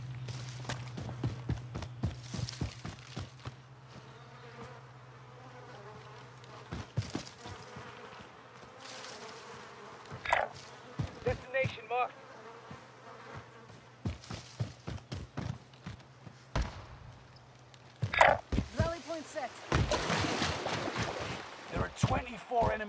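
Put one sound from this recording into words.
Footsteps run quickly over grass and rock.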